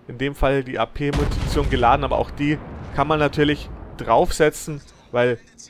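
Shells explode in the water with deep rumbling booms.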